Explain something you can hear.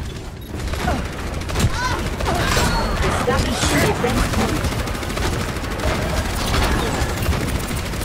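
Video game explosions and impacts thump.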